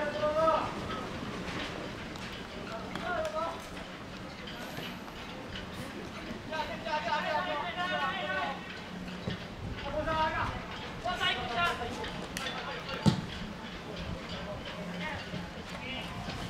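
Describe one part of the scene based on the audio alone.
Young male players shout to each other from across an open field.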